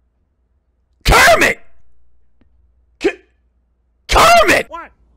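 A young man shouts and exclaims loudly with excitement into a close microphone.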